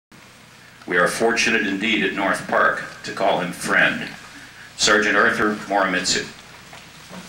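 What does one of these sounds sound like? A middle-aged man speaks calmly and clearly close by.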